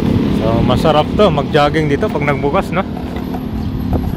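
A motorcycle drives by on a nearby road.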